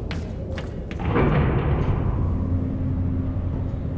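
A heavy metal lift rumbles and grinds into motion.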